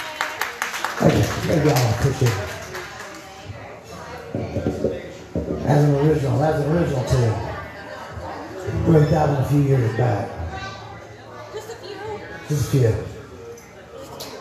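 A man sings into a microphone through a loudspeaker.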